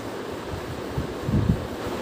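A cloth wipes across a whiteboard.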